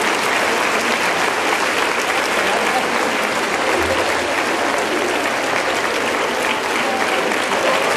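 A large crowd applauds loudly and steadily.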